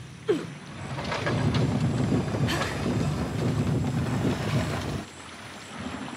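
A heavy stone wheel grinds and rumbles as it is pushed.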